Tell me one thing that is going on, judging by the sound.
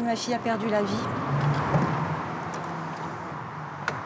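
A van's sliding door clicks and rolls open.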